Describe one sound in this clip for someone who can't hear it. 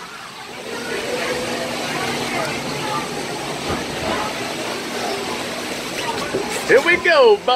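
Water rushes and splashes nearby.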